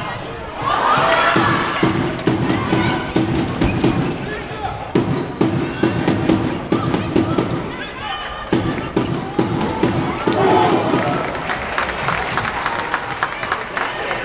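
A ball thuds on the floor.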